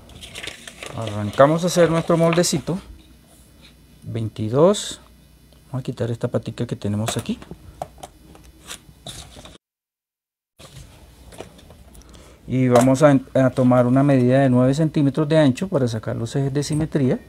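A pencil scratches along paper.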